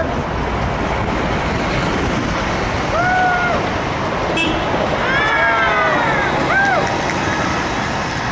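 A city bus drives past.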